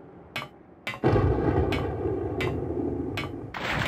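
Hands and feet clank on a metal ladder while climbing.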